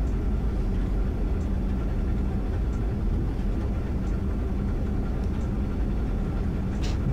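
A train rumbles steadily along the tracks, with wheels clicking over rail joints.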